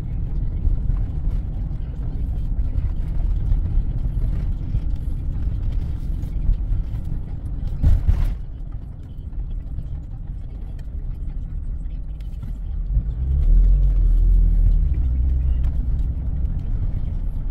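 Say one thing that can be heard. Tyres roll on a rough road.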